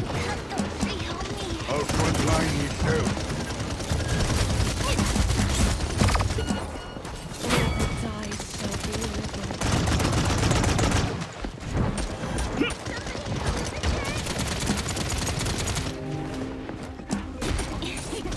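An energy gun fires rapid crackling zaps.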